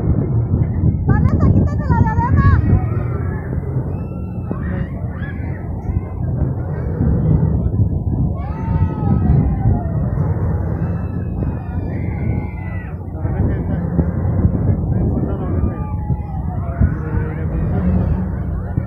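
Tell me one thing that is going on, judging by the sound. Riders scream as a swinging ride swoops up and down.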